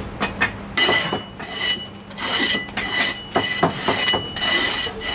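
A cleaver chops through crisp, crunchy pork crackling with sharp knocks.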